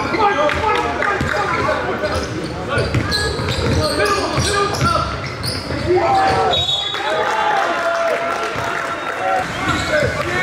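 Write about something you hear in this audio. Young men call out to each other in an echoing gym.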